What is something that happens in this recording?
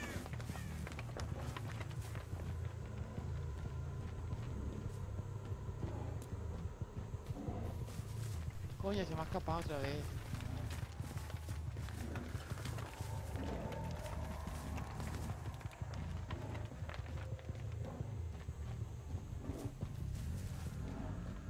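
Footsteps crunch over grass and dirt.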